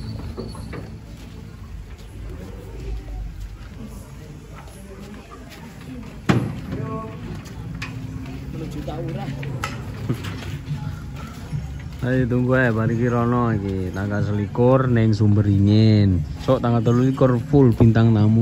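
Gear knocks and clatters as it is loaded onto a truck bed.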